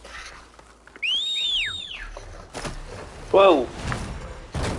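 A large mechanical bird lets out a shrill, screeching cry.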